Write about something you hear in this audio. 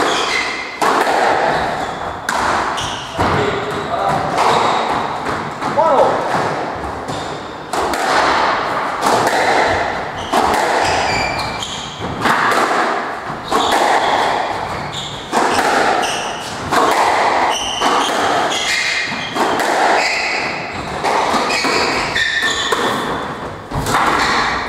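A squash ball smacks hard against the walls, ringing in an echoing court.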